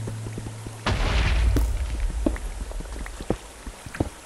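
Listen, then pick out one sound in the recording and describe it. A pickaxe taps against stone blocks.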